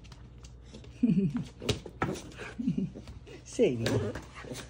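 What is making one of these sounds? A small dog growls and grumbles in short bursts.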